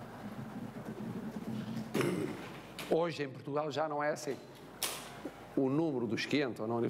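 An elderly man speaks calmly to an audience in a room with a slight echo.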